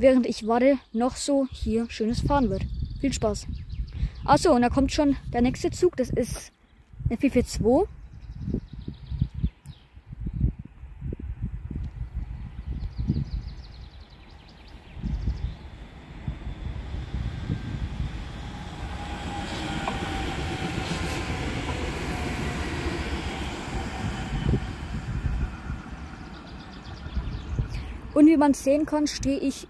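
Wind blows outdoors across a microphone.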